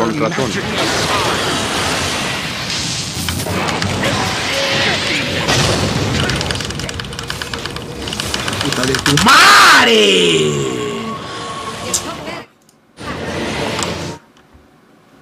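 Game spell effects crackle and whoosh loudly.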